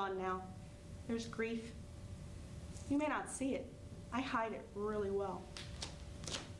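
A woman speaks expressively.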